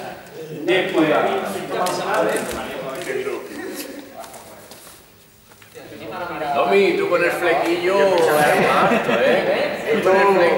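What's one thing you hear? A young man speaks with animation to a group, his voice echoing in a large hall.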